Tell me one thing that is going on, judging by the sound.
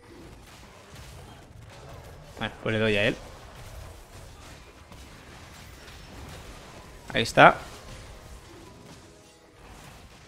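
Fantasy combat sound effects clash and whoosh.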